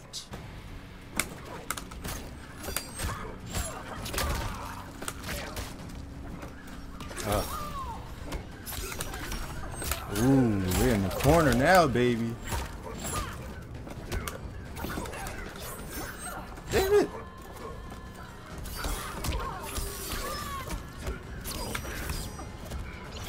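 Blows and clashes from a game fight thud and crack.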